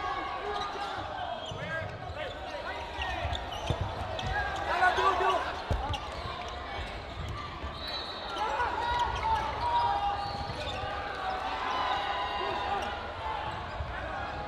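A crowd of players and spectators shouts and chatters in a large echoing hall.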